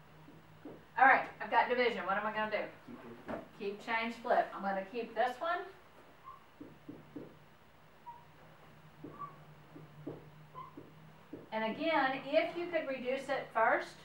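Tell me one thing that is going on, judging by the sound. A middle-aged woman speaks calmly to a room, heard from a distance.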